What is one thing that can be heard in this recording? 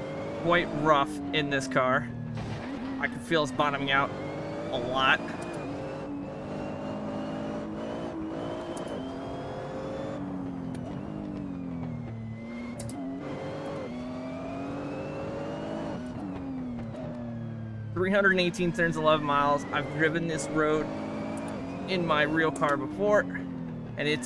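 A GT3 racing car engine revs hard and shifts up and down through the gears.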